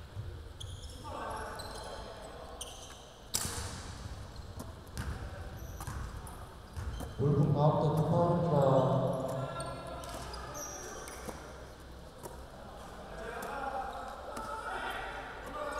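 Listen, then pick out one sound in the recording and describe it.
Young men call out across an echoing gym.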